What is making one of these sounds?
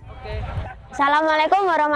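A boy speaks into a clip-on microphone, close by.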